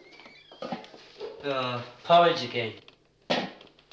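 A metal lid clanks off a large pot.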